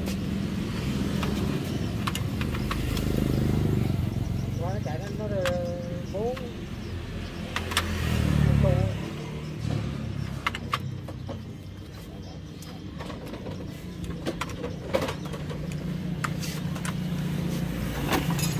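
Metal tools click and clink against engine parts.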